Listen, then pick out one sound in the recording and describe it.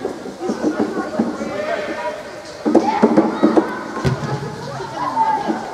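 Young players shout and call out to each other in a large echoing hall.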